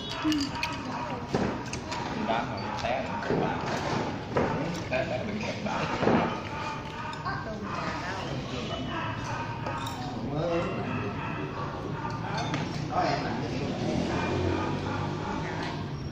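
Spoons and chopsticks clink against bowls and plates.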